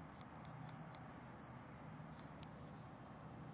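Short electronic chimes ping from a mobile game.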